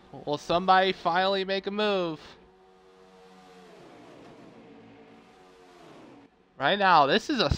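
Race car engines roar and whine as the cars speed past.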